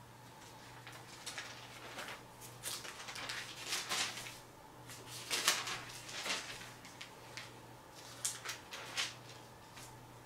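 Thin book pages rustle and turn.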